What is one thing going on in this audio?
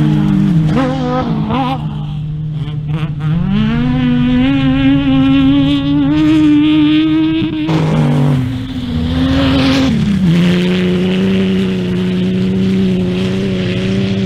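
A race car engine idles loudly and revs up and down.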